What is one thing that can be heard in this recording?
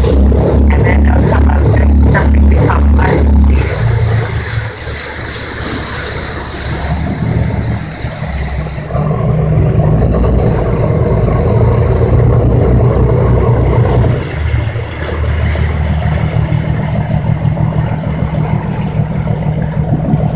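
Wind buffets the microphone.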